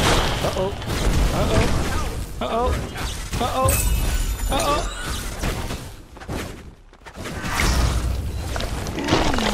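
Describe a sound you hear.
Sword slashes and spell blasts clash in a fast fight.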